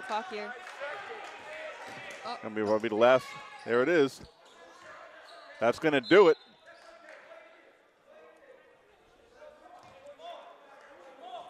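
Sneakers squeak on a hardwood court.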